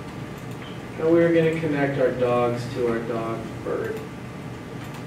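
A man speaks briefly in a large room with some echo.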